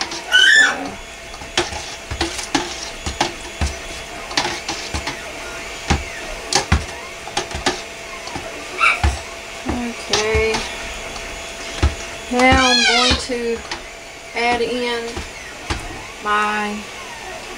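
A plastic device knocks and scrapes against the rim of a metal pot.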